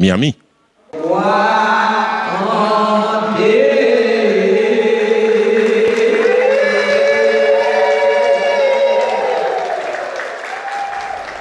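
Two women sing loudly into microphones.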